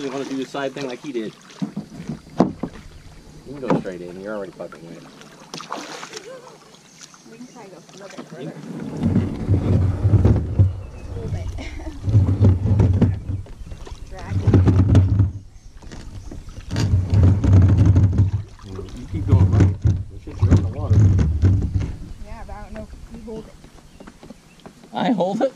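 Shallow lake water splashes and swishes around wading feet.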